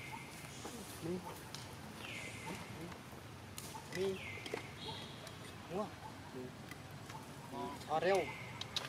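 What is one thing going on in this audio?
A baby monkey squeaks and whimpers softly.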